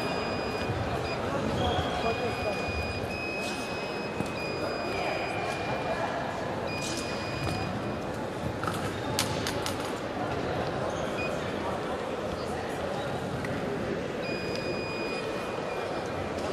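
Fencers' shoes tap and squeak on the floor in a large echoing hall.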